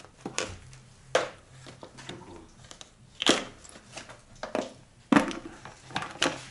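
Plastic parts click and rattle as hands unclip a cover.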